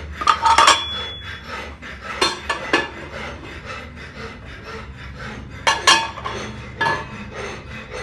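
Metal moulds clatter as they are handled.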